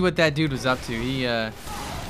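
A flamethrower roars in a burst.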